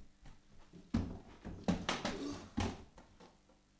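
A person thuds heavily onto a wooden floor.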